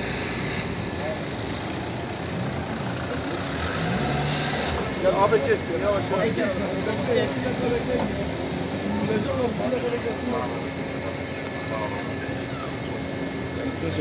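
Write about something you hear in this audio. Street traffic hums steadily in the background.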